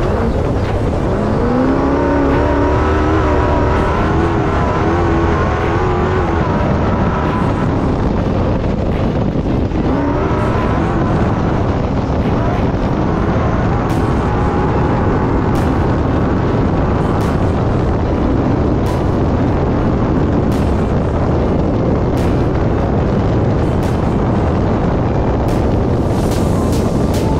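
Tyres rumble and crunch over a bumpy dirt track.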